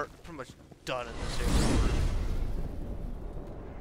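A heavy magical door opens with a deep rushing whoosh.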